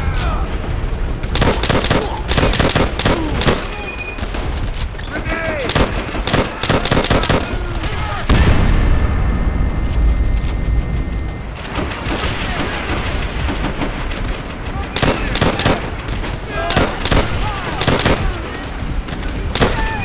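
Rifle shots crack repeatedly amid a battle.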